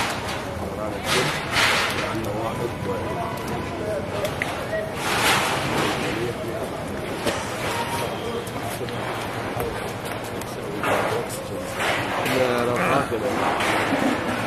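A crowd of men murmurs and talks over one another outdoors.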